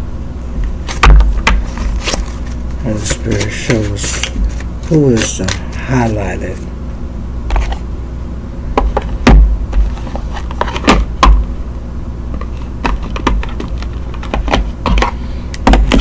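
Playing cards are shuffled and tapped on a table.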